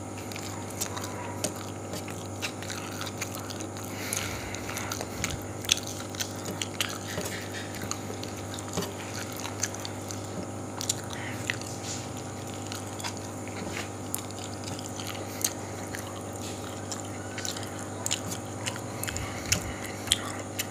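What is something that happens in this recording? A man chews food noisily close by.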